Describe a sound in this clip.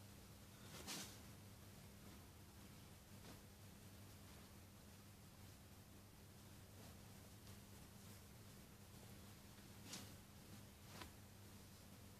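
Hands rustle and smooth fabric.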